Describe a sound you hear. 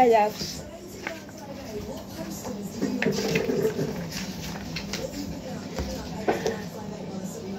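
Paper pages rustle as a boy turns them.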